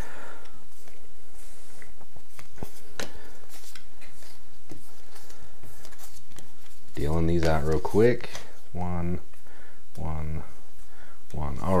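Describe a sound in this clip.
Playing cards slap softly onto a table as they are dealt.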